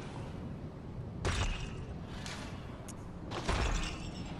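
Footsteps tread on cobblestones.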